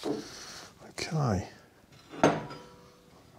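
A heavy metal disc clanks as it is lifted.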